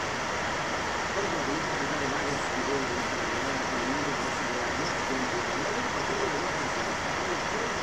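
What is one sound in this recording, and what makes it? A middle-aged man speaks with animation as a news presenter.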